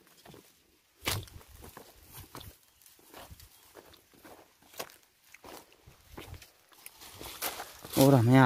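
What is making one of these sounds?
Footsteps crunch on dry dirt and leaf litter.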